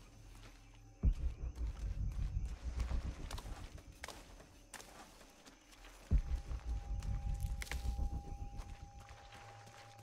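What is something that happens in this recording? Leafy plants rustle loudly as they are pulled up.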